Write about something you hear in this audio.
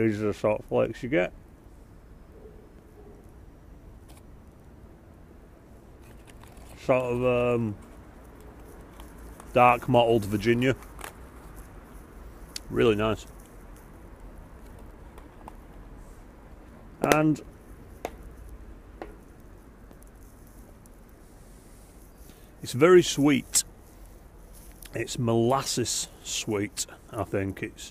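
A man speaks calmly in short bursts, close to a microphone.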